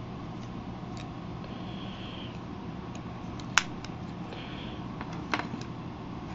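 Hard plastic parts click and tap as a toy is handled.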